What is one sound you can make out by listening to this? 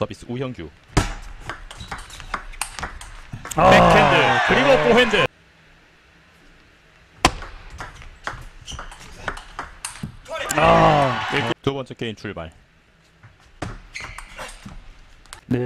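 A table tennis ball clicks off paddles and the table in a rally.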